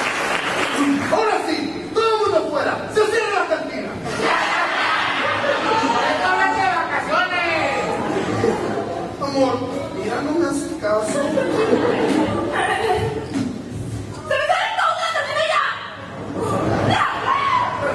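A chorus of men and women sings loudly in a large echoing hall.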